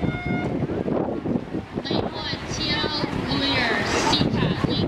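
Swimmers splash into the water and churn it as they swim.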